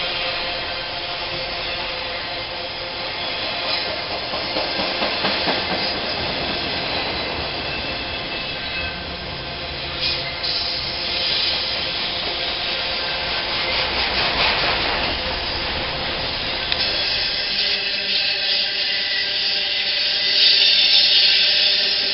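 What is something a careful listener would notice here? A freight train rumbles steadily past on the tracks.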